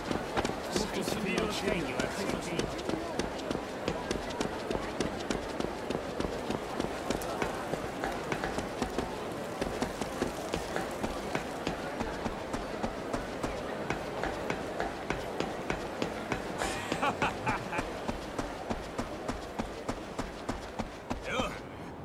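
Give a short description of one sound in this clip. Footsteps run quickly and steadily across hard ground.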